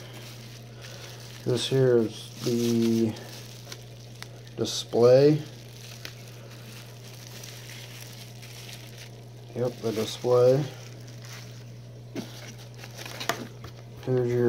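Plastic bubble wrap crinkles and rustles as it is handled.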